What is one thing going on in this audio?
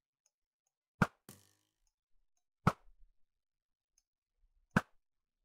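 A bow twangs as arrows are loosed, one after another.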